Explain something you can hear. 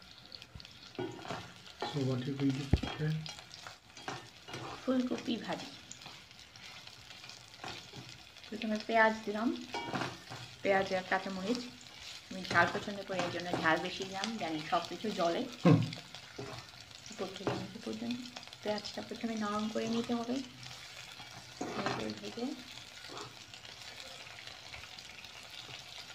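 A spatula scrapes and stirs vegetables in a pan.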